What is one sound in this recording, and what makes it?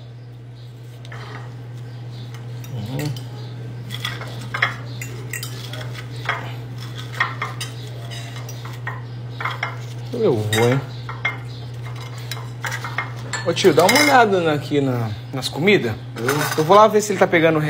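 A knife and fork scrape and clink on a plate.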